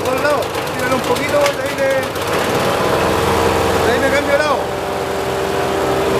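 A wood chipper grinds and crunches sticks as they are fed in.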